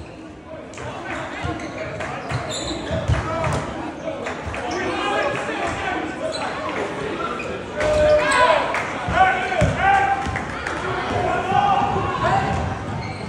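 A crowd of spectators cheers and shouts loudly in an echoing gym.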